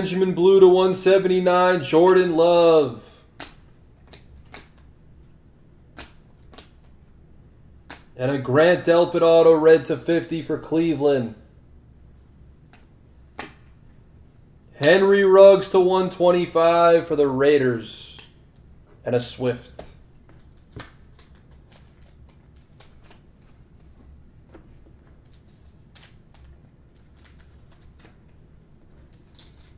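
Trading cards flick and rustle between fingers.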